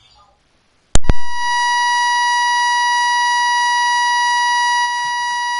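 A steady, high test tone beeps without a break.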